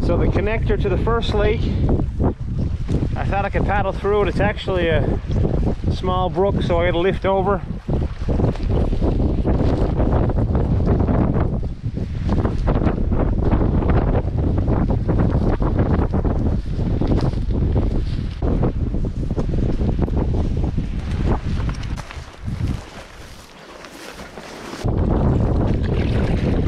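Wind blusters steadily across the microphone outdoors.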